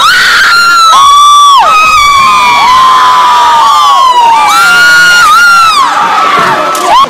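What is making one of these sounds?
Several young women scream and cheer together close by.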